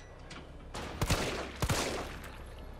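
A pistol fires two sharp shots.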